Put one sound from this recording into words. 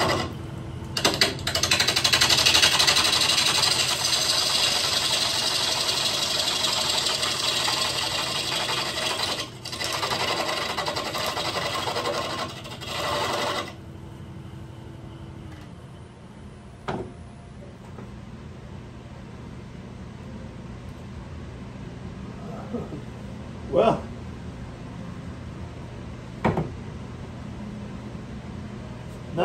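A wood lathe hums steadily.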